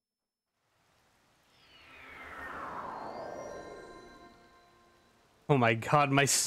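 A shimmering magical whoosh sweeps downward in pitch and fades.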